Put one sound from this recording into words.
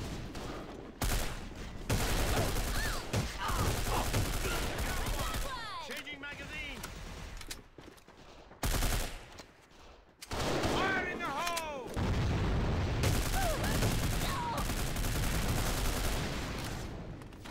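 Gunshots crack repeatedly and loudly.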